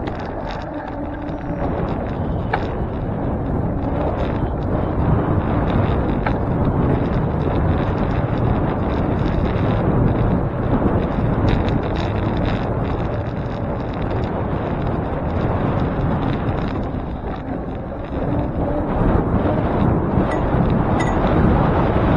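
Wind rushes steadily past a moving bicycle outdoors.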